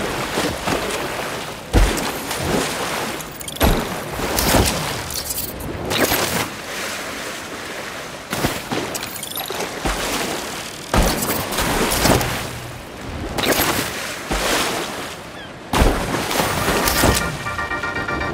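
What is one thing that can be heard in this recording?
Water splashes loudly as a figure skims across a river.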